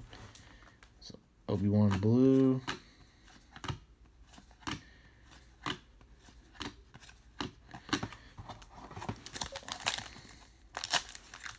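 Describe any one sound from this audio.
Trading cards flick and slide against one another.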